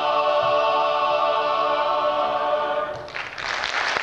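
A men's choir sings a held chord in a large hall, then stops.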